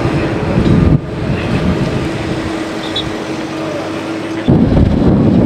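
A passenger van drives past close by.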